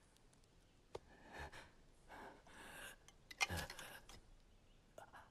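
A wounded man groans and speaks weakly.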